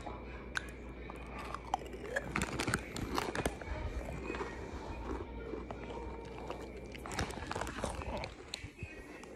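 A man chews food with his mouth closed.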